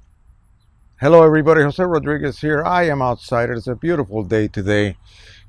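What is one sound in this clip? An older man speaks calmly and closely into a clip-on microphone.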